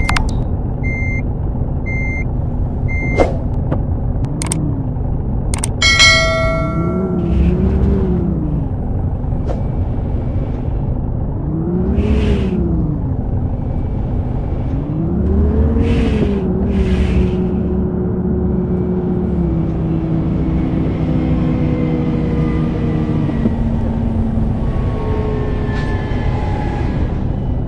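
A bus engine idles and revs up and down repeatedly.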